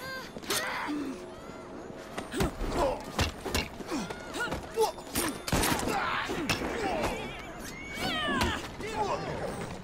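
Punches land with heavy thuds during a fight.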